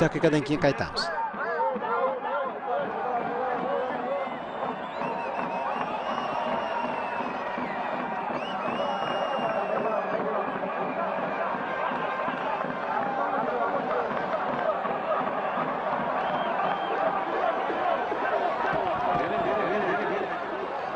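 A large crowd chants and murmurs in an open stadium.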